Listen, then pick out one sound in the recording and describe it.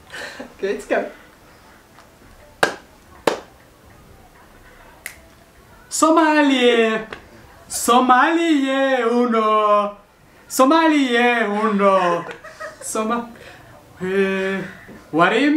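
A woman laughs softly.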